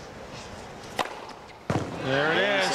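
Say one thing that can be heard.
A tennis racket strikes a ball.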